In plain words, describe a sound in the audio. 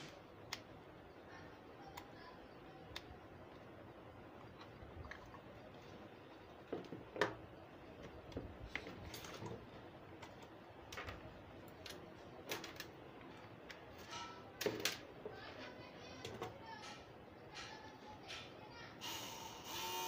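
Plastic parts click and knock as cables are plugged in and handled.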